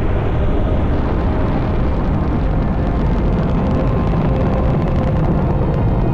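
A rocket engine roars loudly as a rocket lifts off.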